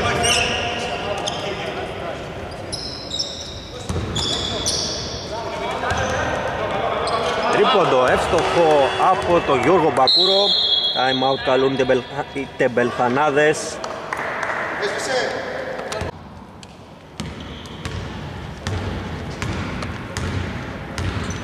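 A basketball bounces on a hard floor, echoing in a large hall.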